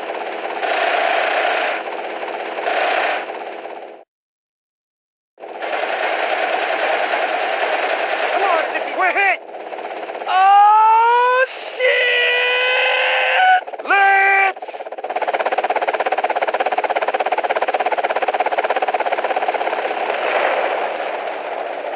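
A helicopter's rotor chops steadily overhead.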